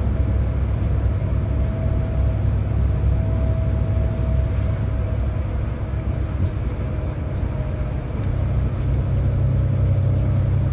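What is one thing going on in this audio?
A bus engine drones steadily from inside the cabin.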